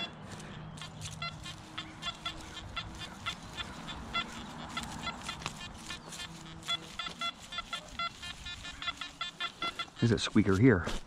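A metal detector beeps in quick, repeated pulses.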